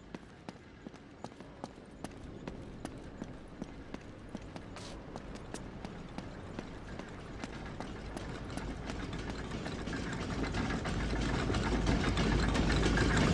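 Footsteps run quickly over hard stone.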